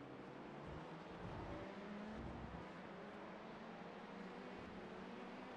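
Race car engines roar steadily.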